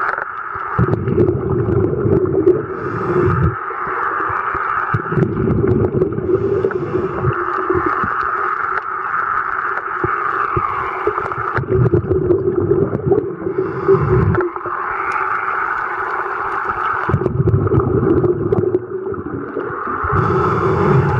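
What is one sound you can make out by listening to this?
Water rushes and gurgles, heard muffled from underwater.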